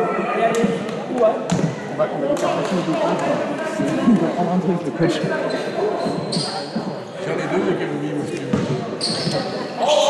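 A man talks calmly in an echoing hall.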